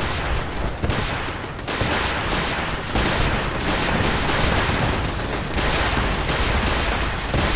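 Laser weapons fire with sharp zaps.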